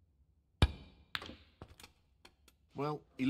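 Snooker balls knock together a few times.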